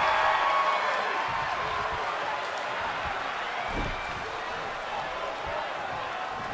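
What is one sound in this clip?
A crowd roars and cheers steadily in a large arena.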